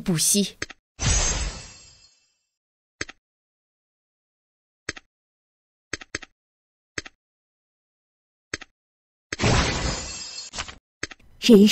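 A bright chiming whoosh sounds.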